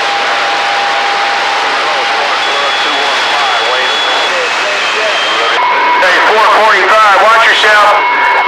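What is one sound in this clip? A shortwave radio hisses with steady static.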